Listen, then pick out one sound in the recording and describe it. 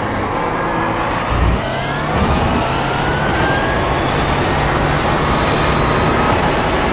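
A racing car engine roars loudly, rising in pitch as it speeds up through the gears.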